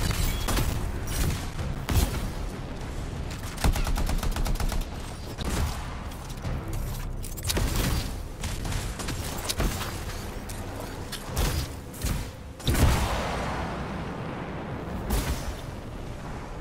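Jet thrusters roar in bursts.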